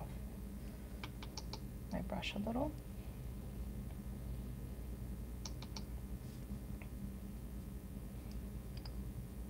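Fingernails tap and click lightly on a plastic container.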